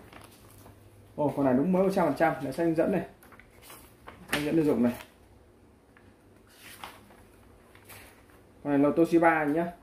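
Paper sheets rustle as they are handled.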